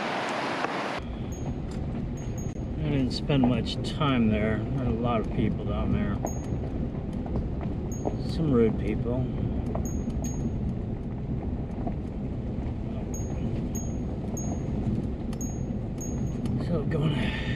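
A vehicle engine rumbles low as it drives slowly.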